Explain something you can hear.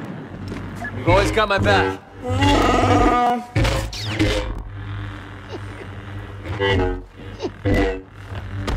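A lightsaber hums and swooshes as it swings.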